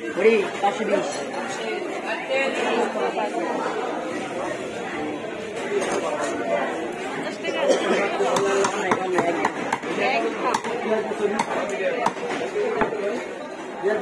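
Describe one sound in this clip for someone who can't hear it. A crowd of men chatters nearby.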